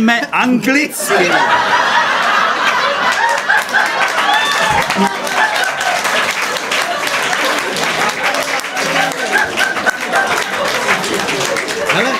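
A nylon-string guitar is strummed quickly.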